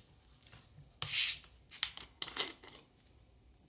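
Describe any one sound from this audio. A plastic bottle cap twists open with a short hiss of gas.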